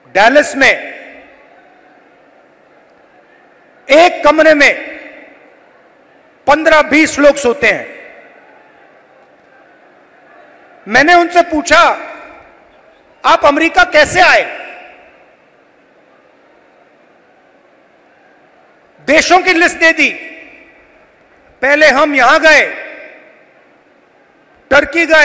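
A man speaks forcefully into a microphone over loudspeakers, in short bursts with pauses, echoing in a large open space.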